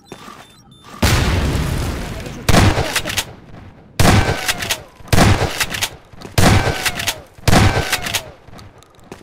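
A shotgun fires loud, booming shots one after another.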